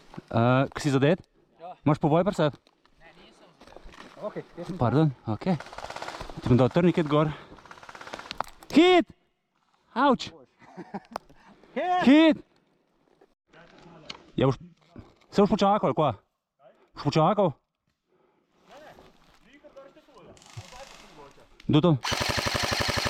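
A man speaks in short, hushed bursts close to the microphone.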